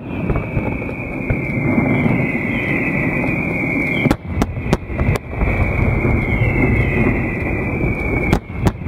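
Fireworks crackle and hiss steadily.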